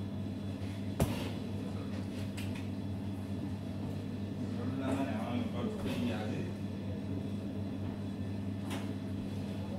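A metal bowl clinks on a counter.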